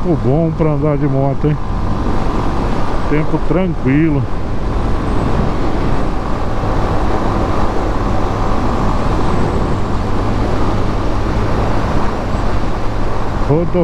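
A motorcycle engine revs up and down as gears shift.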